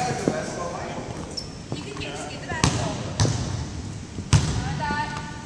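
Basketballs bounce on a wooden floor, echoing in a large hall.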